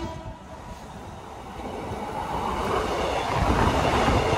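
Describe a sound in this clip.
A second train approaches fast and rushes past close by.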